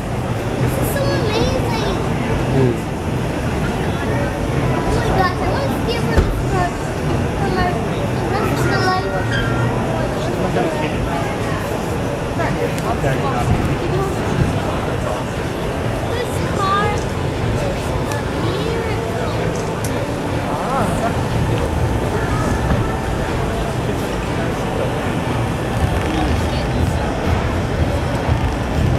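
A crowd of men and women chatter steadily in a large, echoing hall.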